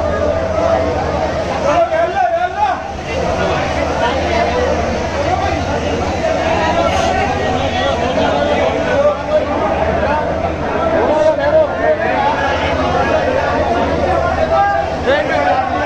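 A crowd of men chants and talks together close by.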